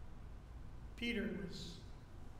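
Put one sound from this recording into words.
An elderly man speaks briefly through a microphone.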